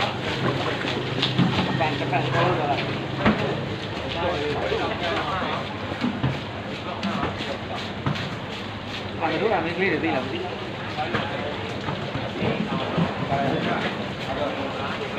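A knife cuts and scrapes through wet fish flesh.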